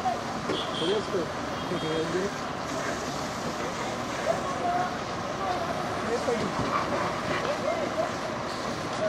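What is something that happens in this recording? A crowd of men shout and talk in the distance.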